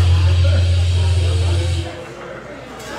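An amplified band plays loudly with a deep, droning bass, then stops.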